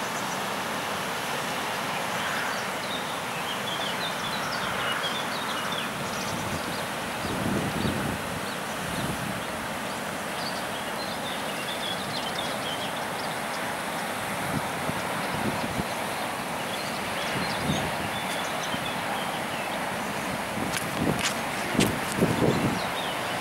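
A river rushes and splashes steadily outdoors.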